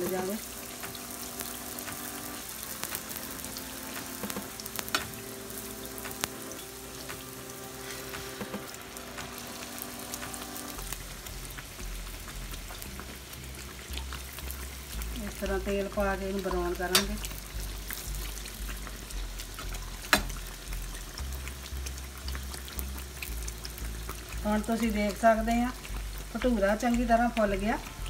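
Hot oil sizzles and crackles steadily.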